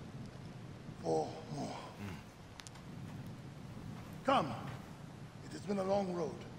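A young man speaks eagerly and warmly.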